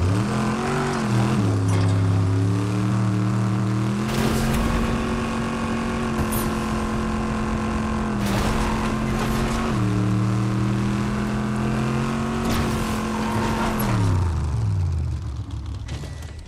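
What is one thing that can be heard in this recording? Tyres crunch over gravel and dirt.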